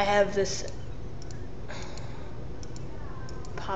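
A computer mouse button clicks.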